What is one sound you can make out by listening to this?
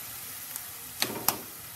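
A metal lid clinks against a pan.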